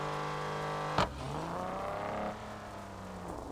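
A car engine revs up sharply and settles back.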